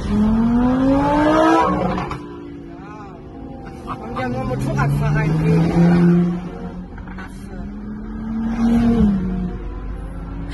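High-revving sports car engines accelerate hard, rising in pitch through the gears.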